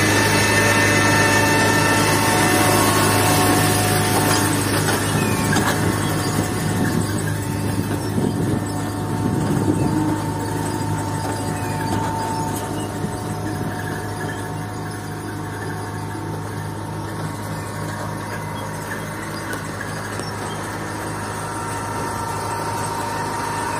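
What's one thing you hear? A farm machine's engine hums steadily close by.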